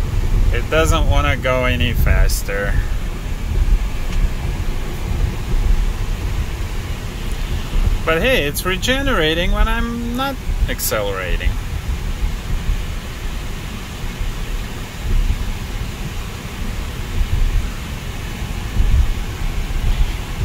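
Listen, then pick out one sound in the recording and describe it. A car drives along a road with a steady low rumble of tyres and engine.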